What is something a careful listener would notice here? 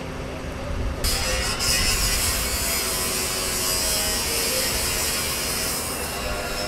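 An angle grinder cuts metal with a loud, high screech.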